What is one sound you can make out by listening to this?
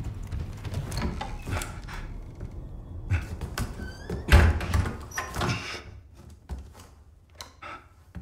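A wooden door creaks open and shuts with a knock.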